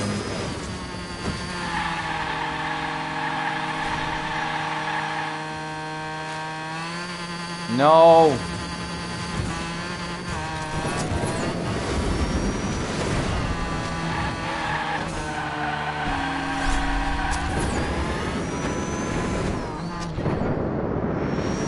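A racing car engine whines and roars at high speed.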